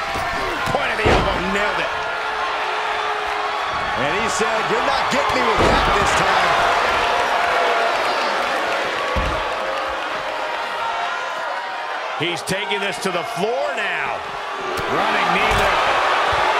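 Heavy bodies slam hard onto a wrestling mat.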